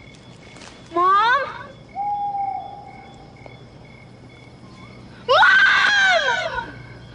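A young woman cries out nearby.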